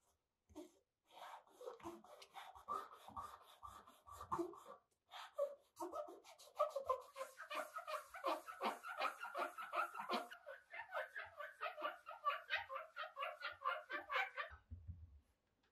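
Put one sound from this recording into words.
A wooden block rubs back and forth on sandpaper in quick, steady, rasping strokes.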